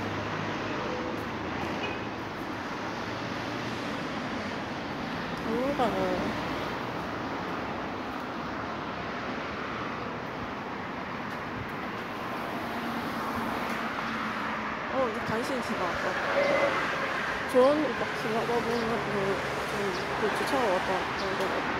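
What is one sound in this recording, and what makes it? Traffic hums steadily in the street nearby.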